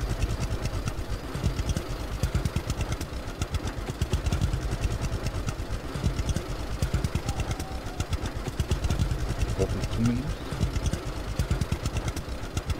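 A tractor engine rumbles and chugs steadily.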